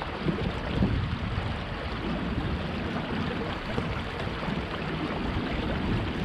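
Water flows and ripples gently nearby.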